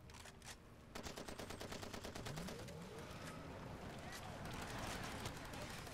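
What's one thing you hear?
A submachine gun fires rapid bursts at close range.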